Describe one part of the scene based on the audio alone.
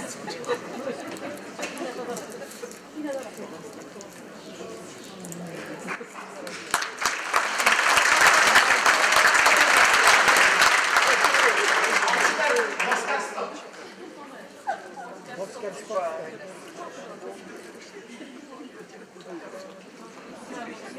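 A man speaks loudly in a large echoing hall.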